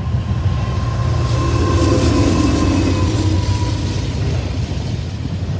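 A locomotive engine roars as it passes.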